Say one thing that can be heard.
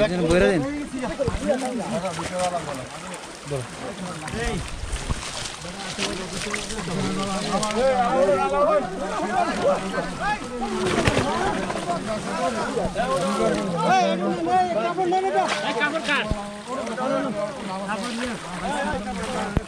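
Water splashes as people wade through a pond.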